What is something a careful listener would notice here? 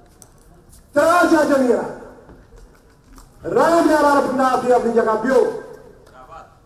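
An elderly man chants loudly through a microphone in a large echoing hall.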